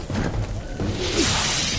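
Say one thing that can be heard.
A magic blast bursts with a loud hiss.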